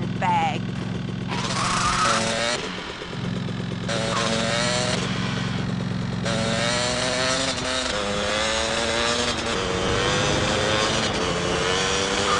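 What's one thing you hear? A motorbike engine hums and revs.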